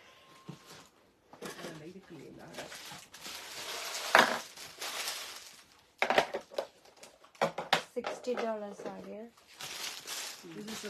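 Fabric rustles as it is unfolded and handled.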